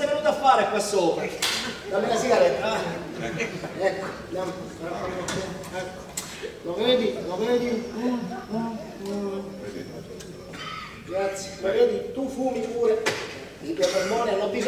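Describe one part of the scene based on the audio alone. A man speaks with animation, heard from a distance in a hall.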